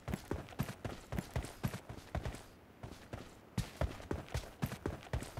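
Quick running footsteps thud over the ground.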